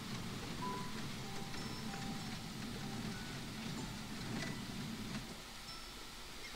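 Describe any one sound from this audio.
A wagon rolls slowly over cobblestones.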